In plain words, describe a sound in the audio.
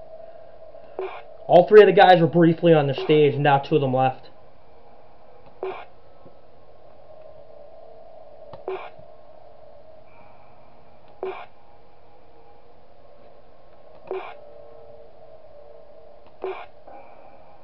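A short electronic click sounds every few seconds.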